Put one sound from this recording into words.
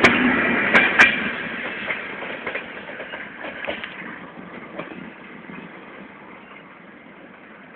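A passenger train rumbles past close by and fades into the distance.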